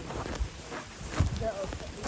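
A reindeer tears and munches grass close by.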